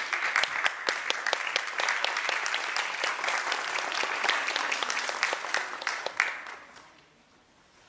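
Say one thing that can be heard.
An audience claps and applauds in a room with some echo, then the clapping fades away.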